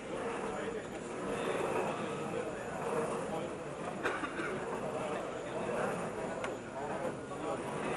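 A crowd of spectators murmurs and chatters indoors.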